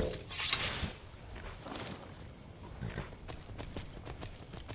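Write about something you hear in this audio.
Hooves clop on hard ground.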